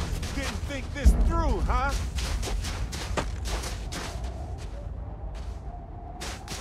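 Boots crunch through snow in steady footsteps.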